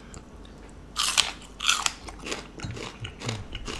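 A man crunches and chews food loudly.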